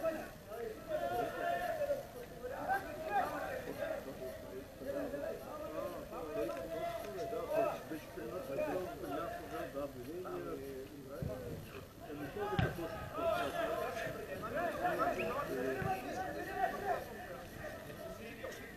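Young men chat and talk over each other nearby, outdoors.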